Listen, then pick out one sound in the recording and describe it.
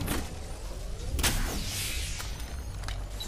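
An electronic device whirs and crackles as it charges up.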